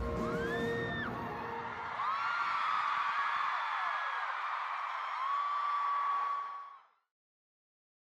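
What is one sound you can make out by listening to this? A large crowd cheers and whistles in a big open arena, then fades out.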